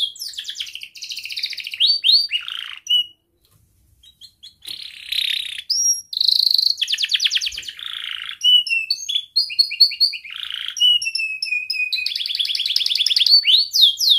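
A canary sings close by in long trilling and warbling phrases, with brief pauses.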